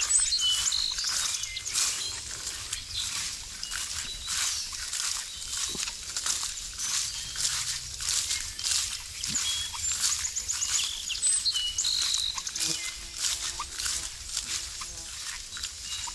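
A dog trots through tall grass, its paws rustling the leaves.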